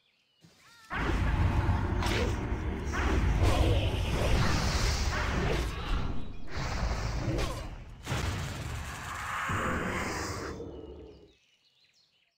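Magic blasts and weapon strikes clash loudly in a fight.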